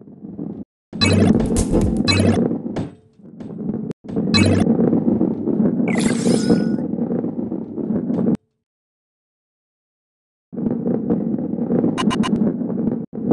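Coins chime brightly as a ball collects them.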